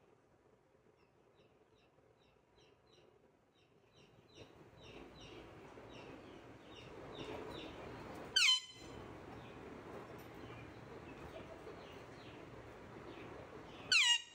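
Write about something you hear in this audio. A parrot chirps softly in quick chattering notes.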